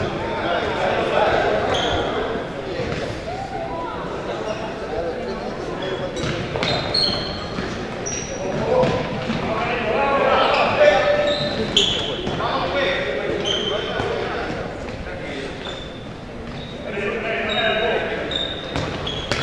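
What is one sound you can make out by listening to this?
Players' shoes squeak sharply on a wooden gym floor.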